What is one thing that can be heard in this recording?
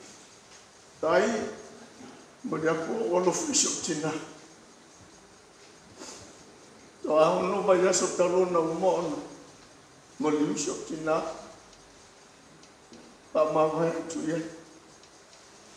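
A middle-aged man speaks through a handheld microphone in short bursts with pauses.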